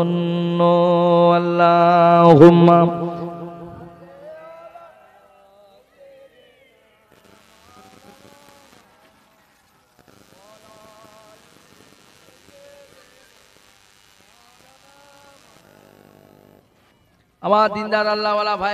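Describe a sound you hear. A young man chants loudly in a long, wavering voice through a microphone.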